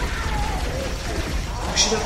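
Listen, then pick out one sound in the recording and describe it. Weapons fire in bursts of sharp shots.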